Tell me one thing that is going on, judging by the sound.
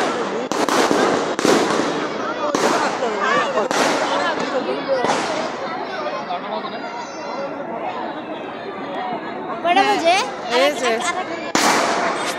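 A crowd of men and women shouts and chatters outdoors.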